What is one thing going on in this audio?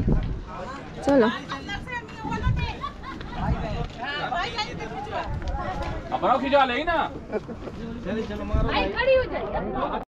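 Men and women talk nearby in a crowd outdoors.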